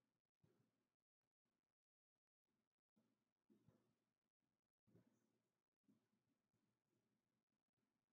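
A marker squeaks and taps faintly on a whiteboard.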